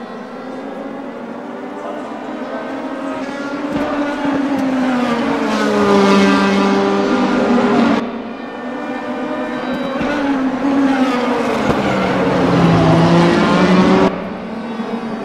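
A racing car engine roars close by, rising in pitch and dropping sharply at each gear change.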